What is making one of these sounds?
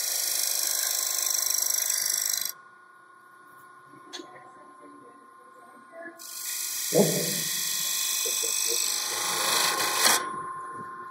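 A chisel scrapes and hisses against spinning wood.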